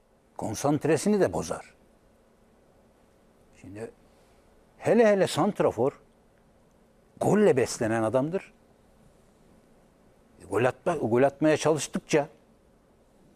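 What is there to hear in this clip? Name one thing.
A middle-aged man speaks with animation in short bursts, close to a microphone.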